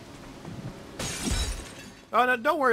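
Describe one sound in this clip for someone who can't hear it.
A smoke grenade bursts with a hiss.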